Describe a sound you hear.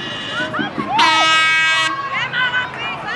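A referee's whistle blows a long, shrill blast.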